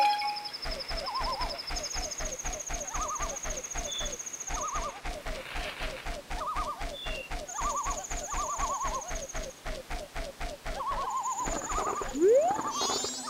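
Water rushes and splashes as a game character swims fast.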